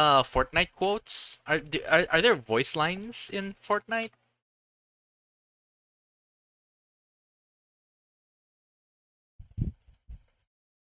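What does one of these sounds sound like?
A young woman speaks quickly and with animation into a microphone.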